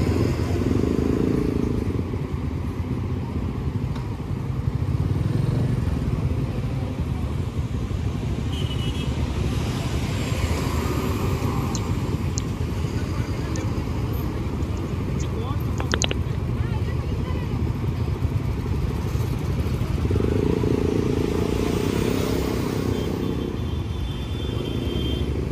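Traffic roars past on a road outdoors.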